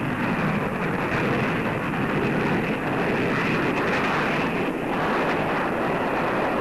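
A jet engine roars loudly as a plane speeds along a runway.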